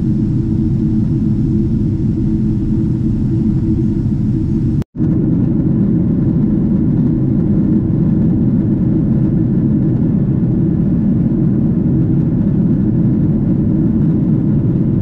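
A jet airliner's engines roar steadily from inside the cabin.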